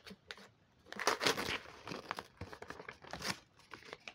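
A paper bag rustles and crinkles in hands.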